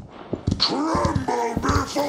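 Large wings flap in a loud rush.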